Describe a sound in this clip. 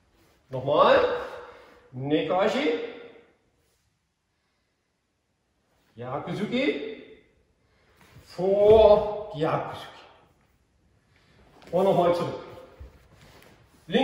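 An elderly man speaks calmly in short phrases in an echoing hall.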